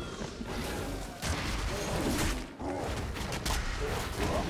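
Blows and magical effects clash in a video game fight.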